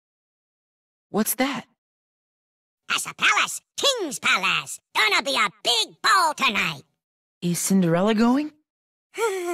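A small creature chatters in a squeaky, high-pitched voice with animation.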